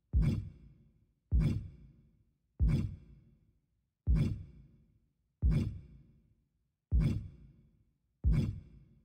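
A deep menu click thumps with each step through a list, ringing out briefly after each one.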